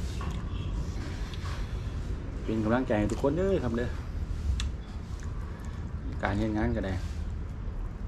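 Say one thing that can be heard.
A man tears apart cooked meat with his hands.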